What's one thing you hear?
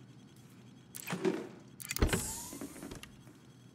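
A heavy crate lid clanks open.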